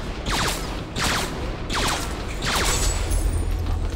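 Whooshing magic zaps sound in quick repeated bursts.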